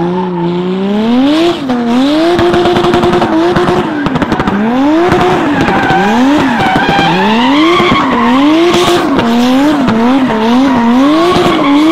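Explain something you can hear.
Car tyres screech as the car drifts on tarmac.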